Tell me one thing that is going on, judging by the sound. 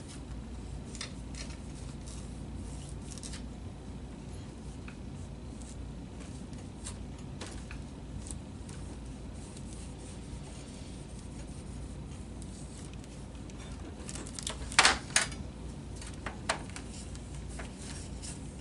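Plastic film crinkles and rustles as it is handled.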